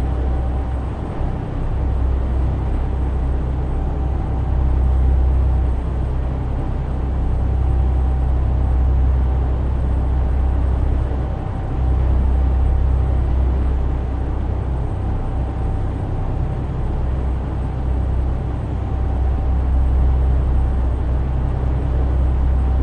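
Tyres roll on a motorway with a steady rushing noise.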